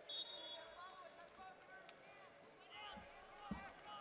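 Bodies thud on a wrestling mat.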